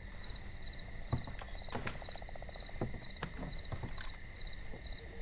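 Objects knock on a wooden table.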